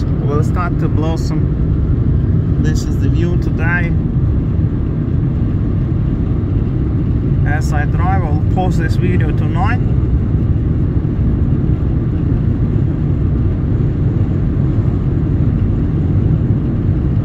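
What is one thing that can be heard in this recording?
A car engine hums and tyres roll steadily on the road.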